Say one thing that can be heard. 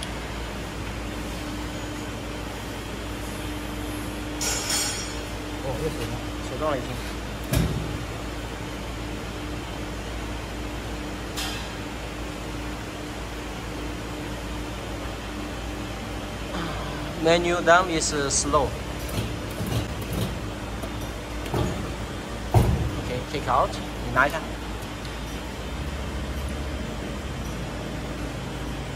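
Metal parts clink as they are placed together.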